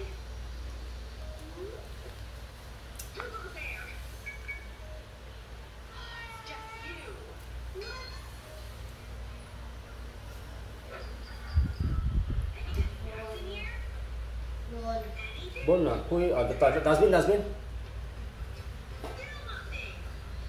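Young children talk and call out nearby.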